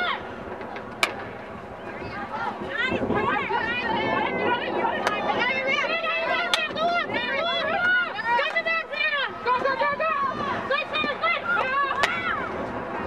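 A hockey stick strikes a ball with a sharp crack.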